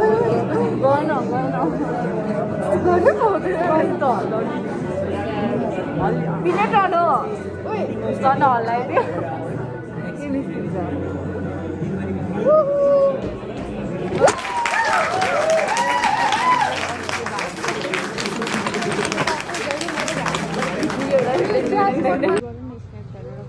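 Young women talk and laugh excitedly close by.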